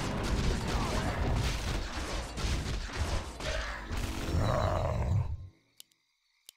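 Weapons clash and thud in a fast, busy fight.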